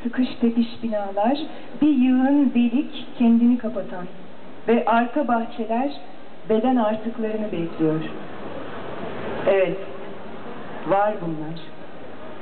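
A young woman reads aloud calmly through loudspeakers outdoors.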